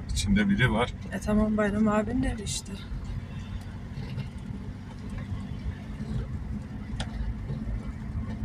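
A car's tyres bump and rattle over a rough dirt track.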